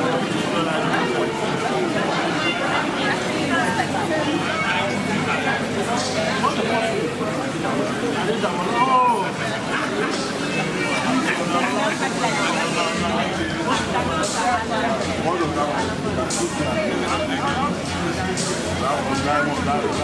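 Men chat with animation close by.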